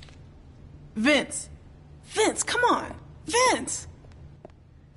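A woman calls out urgently, close by.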